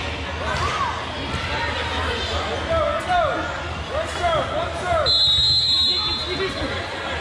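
A volleyball thuds as it is hit.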